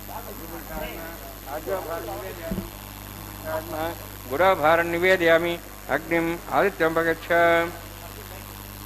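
A man chants in a steady, sing-song voice close by.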